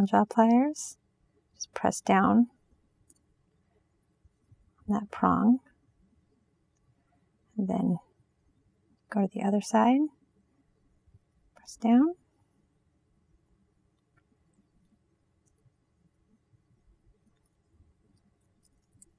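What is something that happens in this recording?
Pliers click softly against small metal links.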